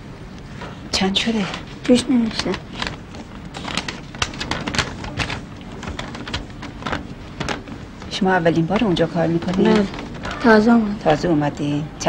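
A boy speaks quietly nearby.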